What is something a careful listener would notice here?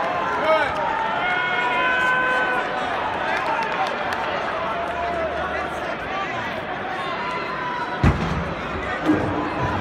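A large crowd murmurs and calls out in a large echoing arena.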